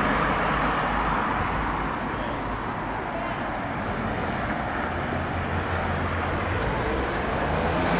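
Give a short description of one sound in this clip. Traffic hums steadily on a nearby street.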